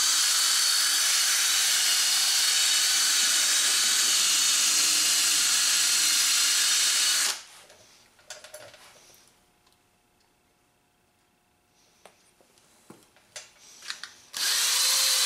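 A cordless drill whirs loudly and steadily.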